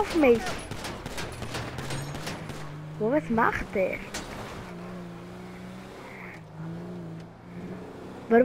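A vehicle engine hums and revs while driving.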